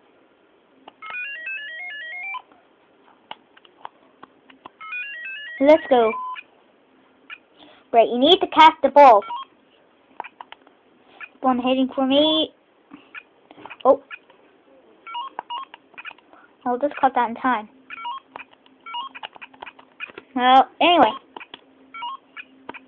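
A handheld electronic game plays short, tinny beeps and little melodies.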